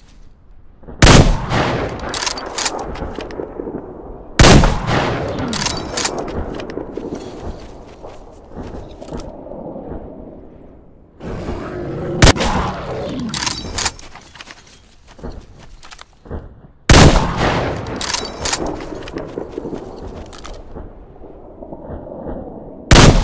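Gunshots fire in loud bursts, each followed by a long rumbling echo.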